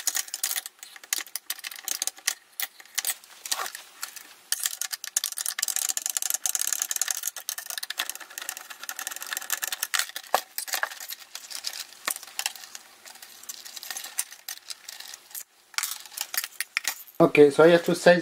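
Metal parts click and scrape as they are handled.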